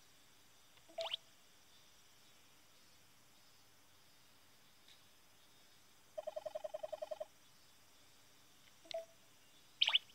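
A video game plays a short chiming sound effect.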